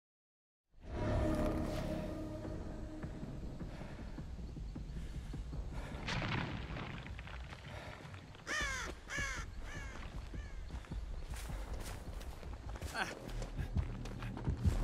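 Footsteps crunch on grass and dirt.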